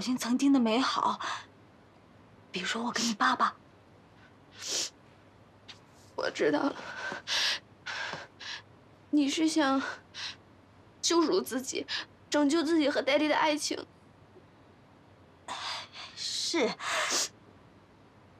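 A woman speaks earnestly, close by.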